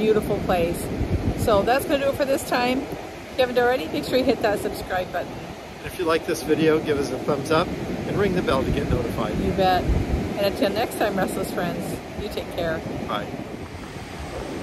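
An older woman talks cheerfully close to a microphone.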